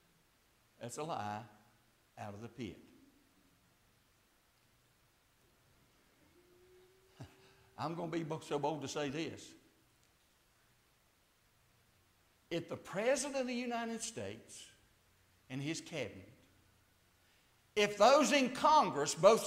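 A middle-aged man speaks with emphasis in phrases, heard through a microphone in an echoing room.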